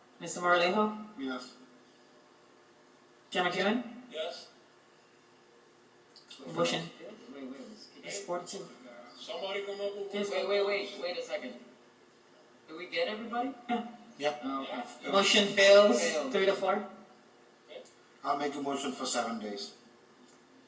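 Men and women answer briefly one after another through microphones.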